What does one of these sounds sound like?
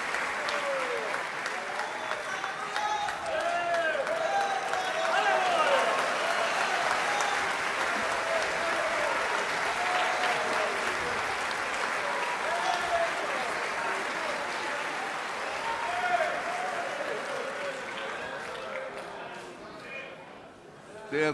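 A large crowd applauds in an echoing hall.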